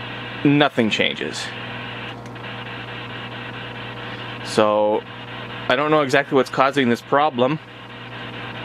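A man's voice speaks in short bursts through a small handheld radio's loudspeaker.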